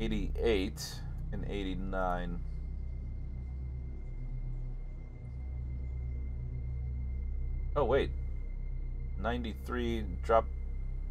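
A young man talks casually and close into a microphone, in short bursts.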